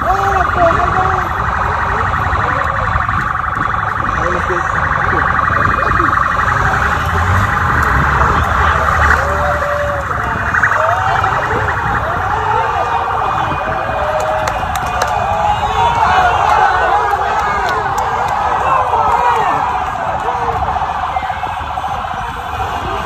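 A large crowd of football fans chants and cheers outdoors.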